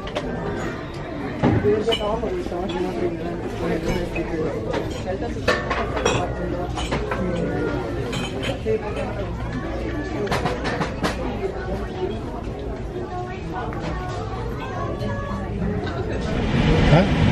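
Shoppers chatter and murmur indoors.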